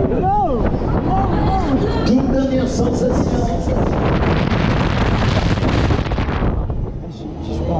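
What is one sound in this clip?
A fairground ride's machinery whirs and rumbles.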